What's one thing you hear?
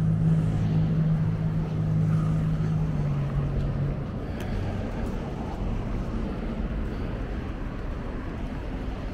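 Traffic rumbles steadily along a nearby road outdoors.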